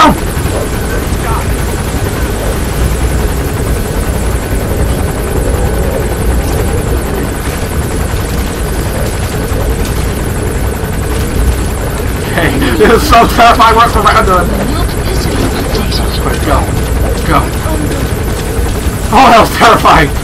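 A helicopter hovers overhead with a steady low rotor rumble.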